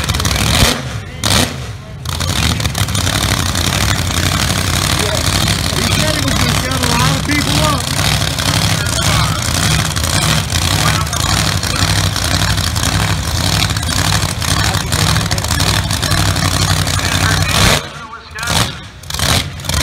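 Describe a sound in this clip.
A dragster's engine rumbles loudly, with a rough, throbbing idle.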